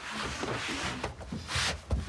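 A rolling pin rolls over dough on a wooden table.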